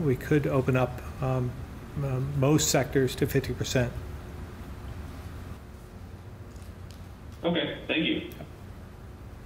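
A middle-aged man speaks calmly through microphones.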